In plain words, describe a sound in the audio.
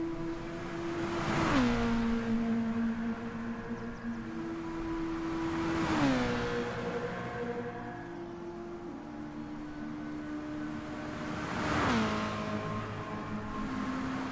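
A race car engine roars past at high speed, its pitch dropping as it goes by.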